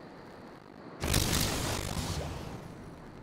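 A bright whooshing chime sounds.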